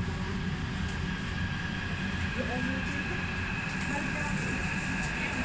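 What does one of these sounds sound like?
A subway train rumbles past steadily with a high whine.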